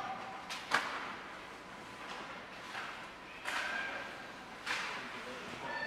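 Hockey sticks clack and pucks thud against the boards in a large echoing rink.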